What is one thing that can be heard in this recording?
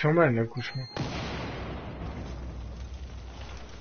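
An explosion booms, followed by a rushing roar.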